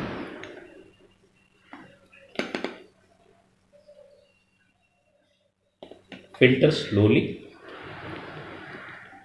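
Liquid trickles through a funnel into a glass flask.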